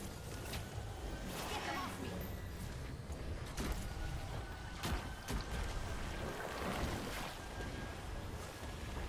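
Video game gunfire pops in quick bursts.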